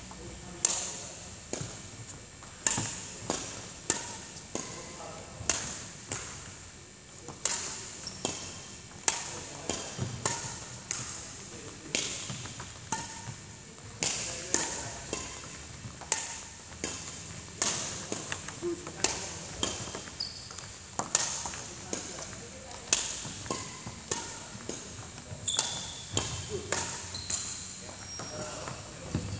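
Rackets smack shuttlecocks again and again in a large echoing hall.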